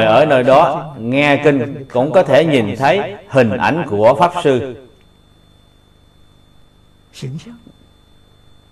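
An elderly man speaks calmly and slowly into a close microphone.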